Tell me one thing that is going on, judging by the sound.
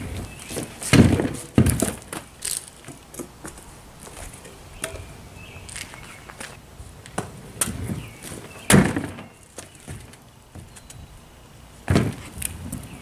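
A scooter clatters and bangs as it lands on a board.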